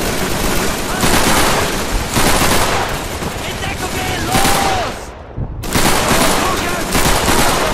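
A rifle fires repeated loud shots.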